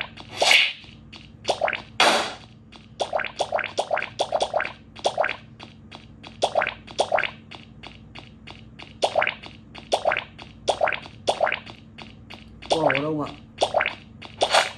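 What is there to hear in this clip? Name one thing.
Short chirpy blips and pops play rapidly from a small phone speaker.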